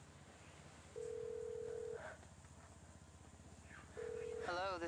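A phone ringing tone sounds in steady beeps.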